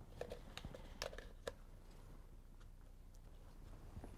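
A paintbrush stirs and taps inside a paint cup.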